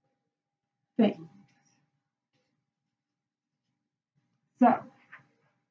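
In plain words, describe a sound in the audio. A young woman speaks briefly, close by, in short bursts.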